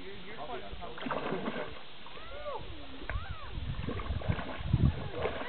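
Water splashes as a horse wades.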